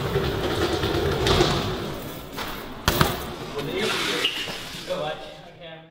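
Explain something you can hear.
A bike's tyres roll over a hard floor.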